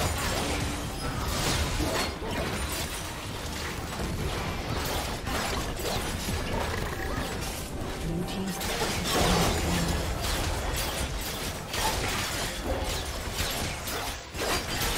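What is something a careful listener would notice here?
Game battle effects whoosh, zap and clash in quick bursts.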